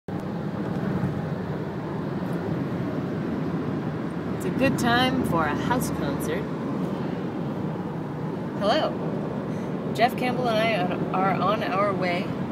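A car's engine and tyres rumble steadily on a road from inside the car.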